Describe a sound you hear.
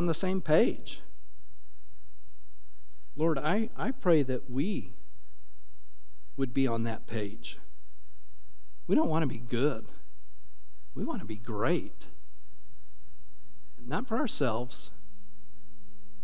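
A middle-aged man speaks slowly in short phrases through a microphone in a reverberant hall.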